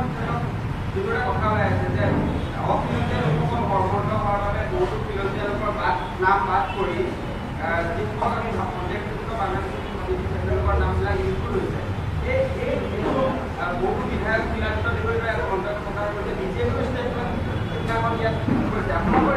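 A middle-aged man speaks steadily into microphones, close and slightly echoing.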